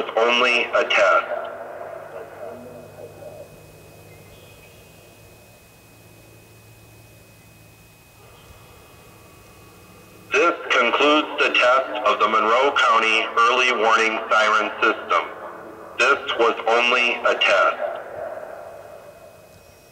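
An electronic outdoor warning siren blares in loud warbling bursts that echo and fade across open air.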